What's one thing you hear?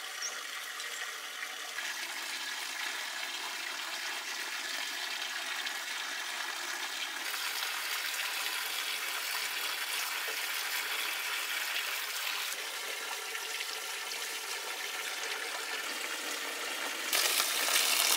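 Water pours from a spout and splashes onto wet ground.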